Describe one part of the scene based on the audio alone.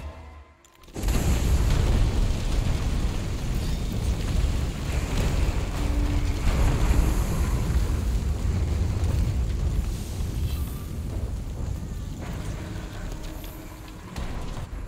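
Flames crackle and burst all around.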